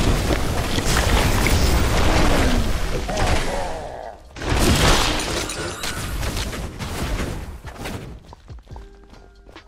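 Game spell effects whoosh and crackle loudly.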